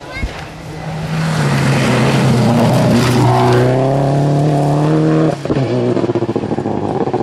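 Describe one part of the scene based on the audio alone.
Gravel sprays and crunches under rally car tyres.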